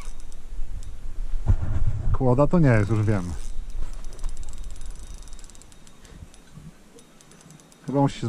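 A fishing reel whirs as its line is wound in.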